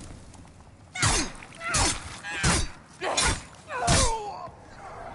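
Metal blades strike sharply several times in quick succession.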